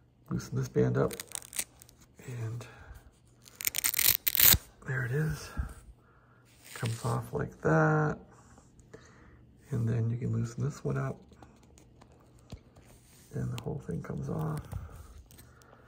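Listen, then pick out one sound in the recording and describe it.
A thin plastic strip crinkles and rustles against skin.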